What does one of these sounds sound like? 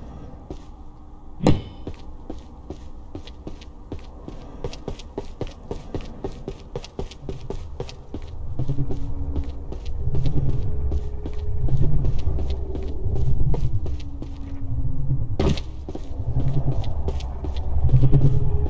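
Footsteps thud steadily across wooden boards.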